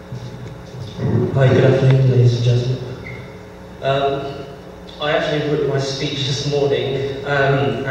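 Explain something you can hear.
A young man speaks into a microphone over a loudspeaker.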